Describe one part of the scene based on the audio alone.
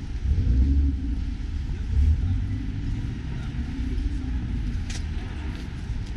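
Passers-by walk past on the pavement.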